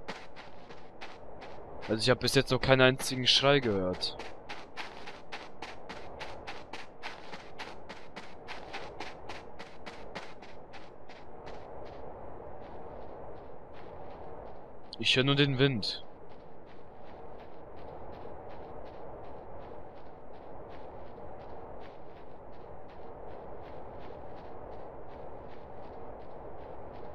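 Footsteps crunch quickly and steadily over rocky ground.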